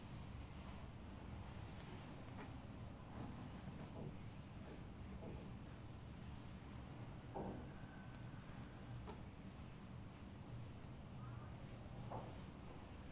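Hands rub and knead skin with soft, quiet friction.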